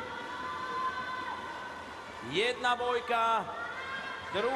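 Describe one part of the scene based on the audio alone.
Children shout and cheer nearby.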